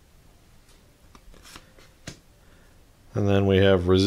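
Cardboard cards tap and rustle as a hand shuffles them.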